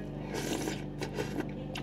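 A man slurps soup from a spoon.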